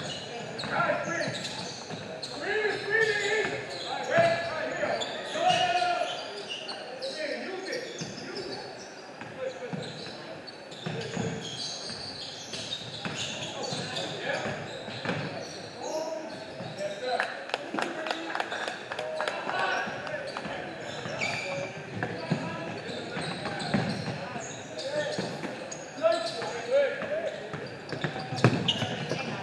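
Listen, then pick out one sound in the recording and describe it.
Young people shout and call out in a large echoing gym.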